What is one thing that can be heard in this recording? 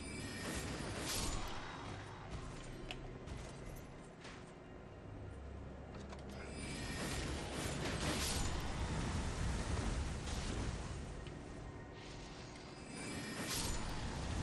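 A sword whooshes through the air in swings.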